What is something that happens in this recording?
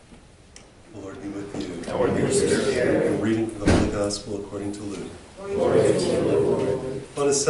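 An elderly man speaks calmly through a microphone in a small echoing room.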